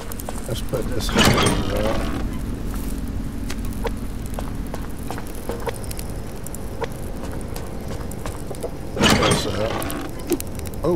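A wooden storage box creaks open.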